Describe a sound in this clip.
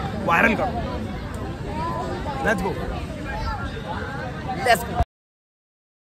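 Young men talk and chatter nearby, outdoors.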